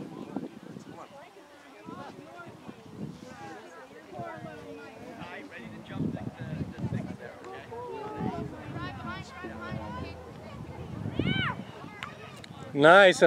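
Children shout and call to each other across an open field outdoors.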